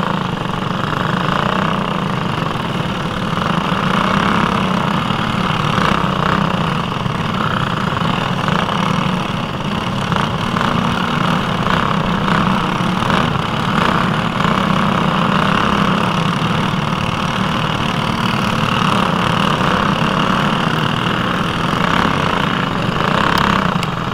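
Other kart engines whine nearby.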